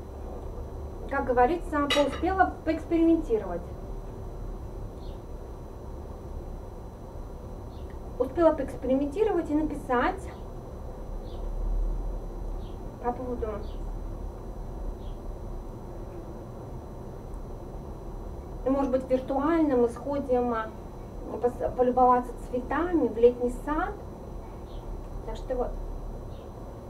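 A woman speaks calmly and close by, in short bursts with pauses.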